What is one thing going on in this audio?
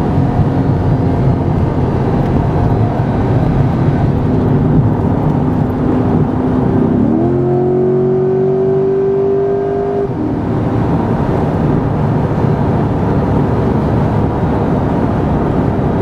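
Tyres roar on a highway at speed.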